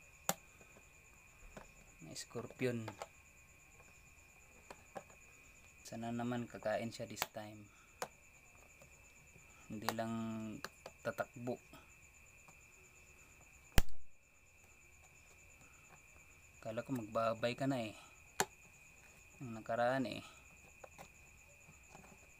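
A finger taps on a thin plastic lid.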